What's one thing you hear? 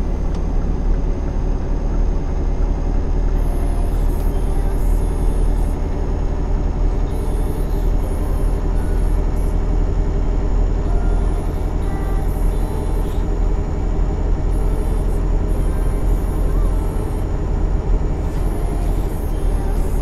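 A truck engine hums steadily with a low drone as it drives.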